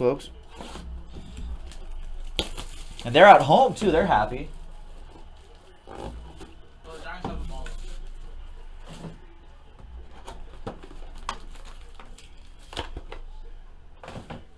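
Cardboard packaging rustles and taps as it is handled.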